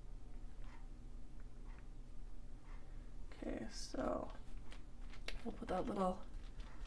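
Paper rustles softly as hands press and slide a cut-out on a page.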